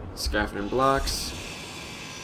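A power grinder whirs and grinds against metal.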